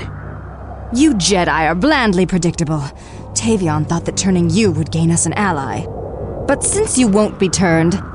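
A man speaks with a sneering, menacing tone.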